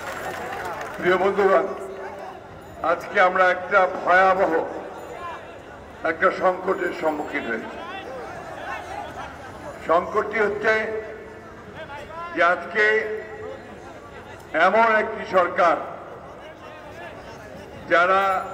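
An elderly man speaks forcefully into a microphone through loudspeakers, in bursts with pauses.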